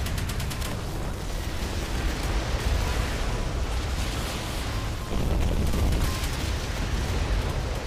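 Naval guns fire in rapid bursts.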